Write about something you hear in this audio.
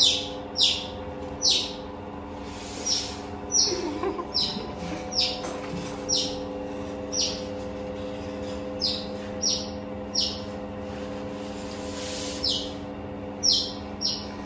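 Small animals give short, high chirping squeaks again and again.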